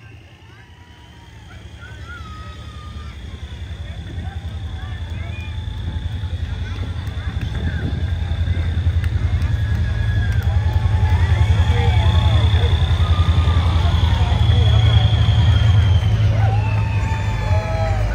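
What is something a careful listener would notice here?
A heavy truck engine rumbles as it tows a trailer past, growing louder.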